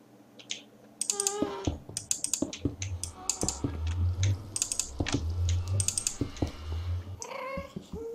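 Stone blocks are set down with short dull knocks.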